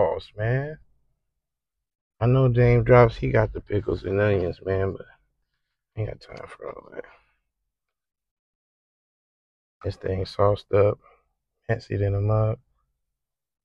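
A man talks with animation close to a clip-on microphone.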